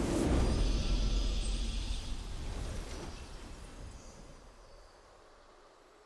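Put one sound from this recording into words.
A triumphant game victory fanfare booms out and slowly fades away.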